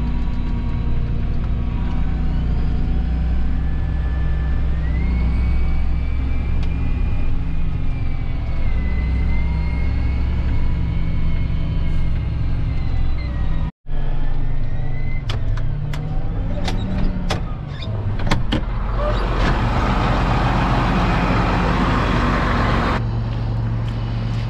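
A tractor engine hums steadily from inside the cab.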